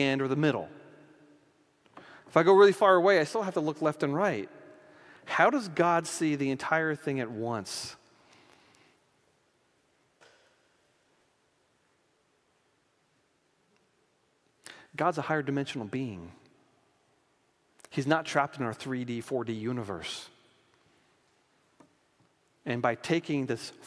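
An elderly man lectures through a microphone in a large room, pausing between phrases.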